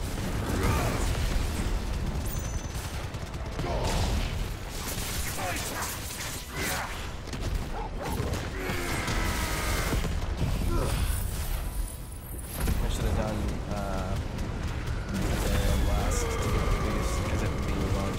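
Sword slashes and magic blasts crash and boom in quick succession.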